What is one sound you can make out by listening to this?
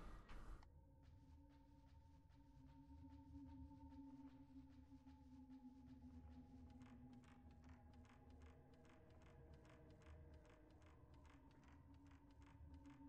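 Footsteps tap steadily on a wooden floor.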